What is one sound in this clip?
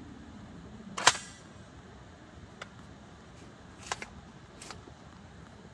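A telescopic metal lantern pole clicks as it is pulled out.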